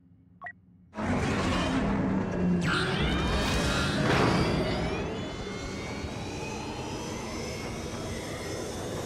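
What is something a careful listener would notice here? A spacecraft engine roars loudly as it launches and flies.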